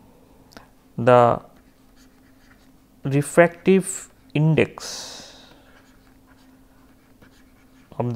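A man speaks calmly and slowly into a close microphone, in short phrases with pauses.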